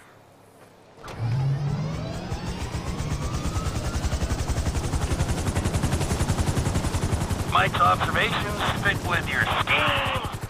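A helicopter engine starts up and its rotor thumps in a fast, steady beat.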